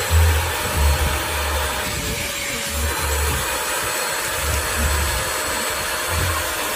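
A vacuum nozzle scrapes and rubs over upholstery in strokes.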